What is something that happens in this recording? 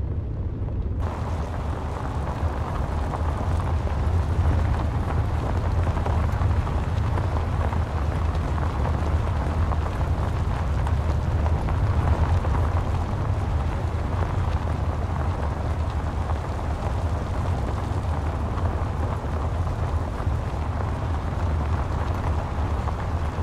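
Tyres crunch and hiss on a gravel road.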